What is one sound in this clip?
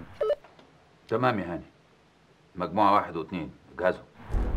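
A middle-aged man speaks low into a two-way radio.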